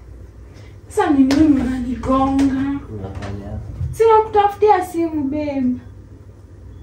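A young woman speaks loudly and with animation close by.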